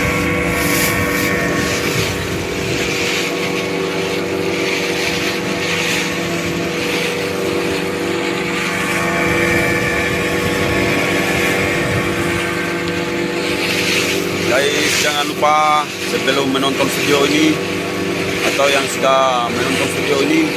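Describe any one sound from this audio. A small boat's motor drones steadily while under way.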